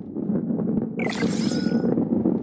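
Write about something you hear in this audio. A game chimes brightly when a ticket is collected.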